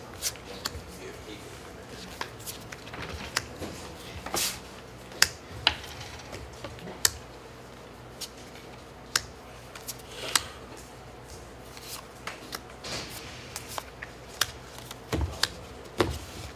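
Playing cards tap and slide on a table mat.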